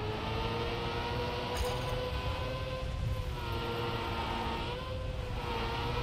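A racing car engine hums steadily, its pitch rising and dipping slightly.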